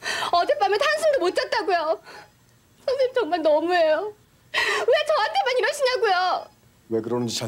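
A young woman pleads in a tearful, shaky voice.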